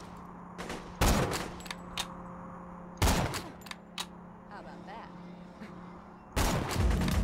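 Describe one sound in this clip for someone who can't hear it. A sniper rifle fires loud booming shots.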